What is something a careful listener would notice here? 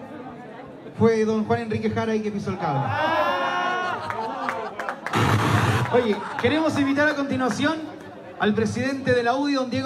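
A man sings loudly through a microphone and loudspeakers in a large echoing room.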